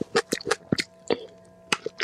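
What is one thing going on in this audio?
A young woman bites into crisp food with a crunch.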